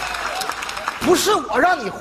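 A man speaks loudly and with animation through a head microphone.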